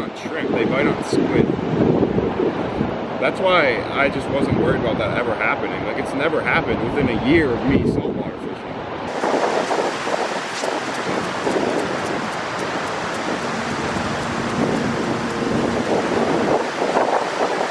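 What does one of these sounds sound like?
Waves wash onto a beach in steady wind.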